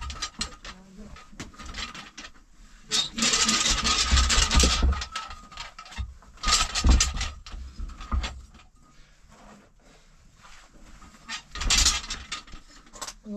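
A stone roller rumbles and scrapes over a dirt floor.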